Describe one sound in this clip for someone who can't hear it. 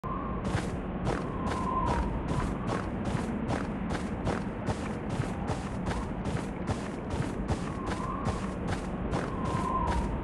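Footsteps crunch quickly and steadily through snow.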